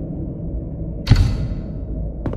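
A small case is picked up with a sharp clack.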